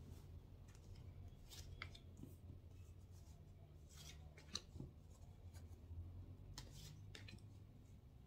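Cards tap softly as they are laid down on a table.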